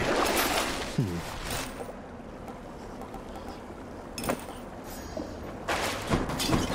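A game's menu clicks and chimes as items are chosen.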